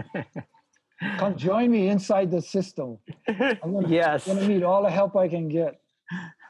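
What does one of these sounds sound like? Another older man talks and laughs over an online call.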